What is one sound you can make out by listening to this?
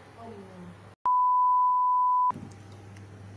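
A steady test tone beeps loudly.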